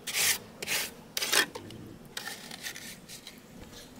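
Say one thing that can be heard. A trowel taps against a board of cement.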